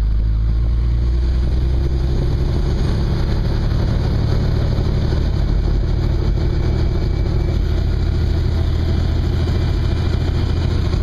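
A helicopter engine and rotor drone loudly and steadily inside the cabin.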